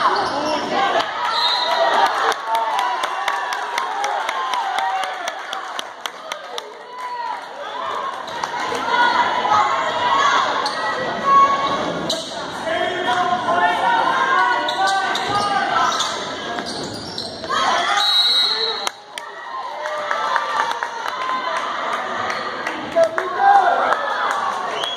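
Spectators talk and call out in a large echoing gym.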